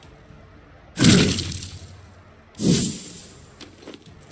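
Flames burst and roar in sudden whooshes.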